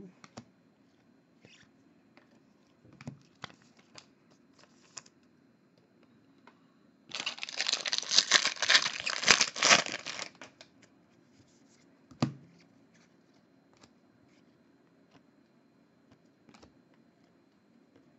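Trading cards rustle and click as they are flipped through by hand.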